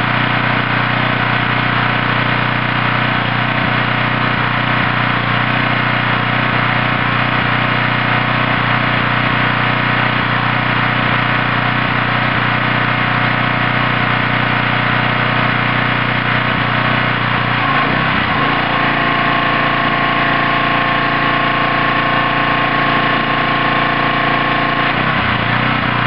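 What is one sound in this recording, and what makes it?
A small petrol engine runs steadily nearby.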